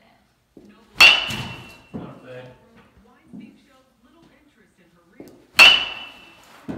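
A metal bat strikes a baseball with a sharp ringing ping.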